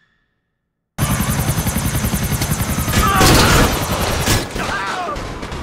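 A helicopter's rotor thuds steadily overhead.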